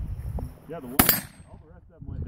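A rifle fires a single loud shot outdoors.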